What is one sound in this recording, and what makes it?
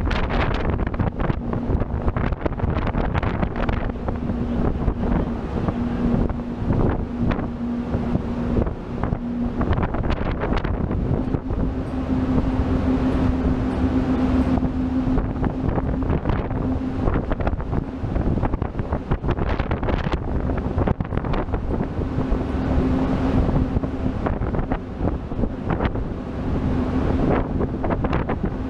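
Strong wind buffets loudly outdoors.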